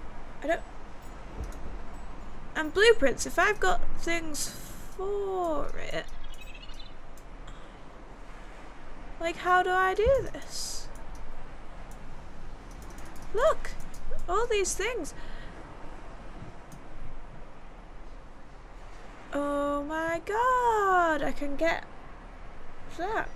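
A young woman talks with animation into a close microphone.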